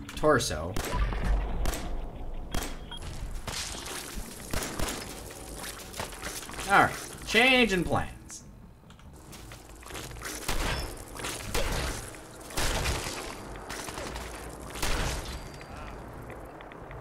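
A gun fires in rapid bursts of sharp shots.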